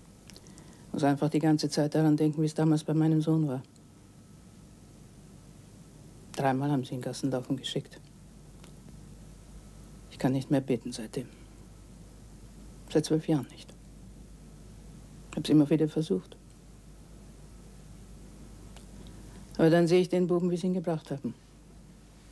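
A middle-aged woman answers in a low, measured voice.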